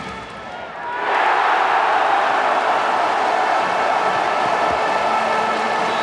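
A large crowd bursts into a loud, sustained cheer.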